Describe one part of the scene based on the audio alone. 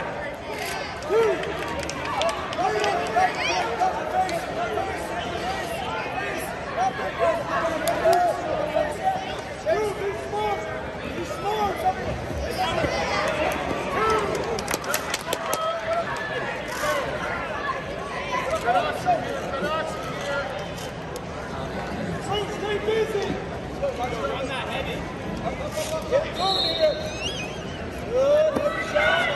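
Wrestlers thud and scuffle on a mat.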